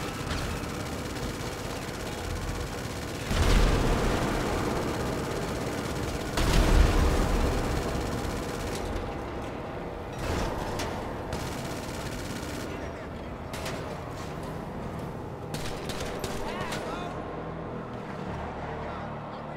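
A heavy vehicle's engine roars steadily as it drives.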